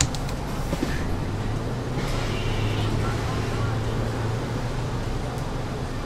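A bus engine rises in pitch as the bus pulls away.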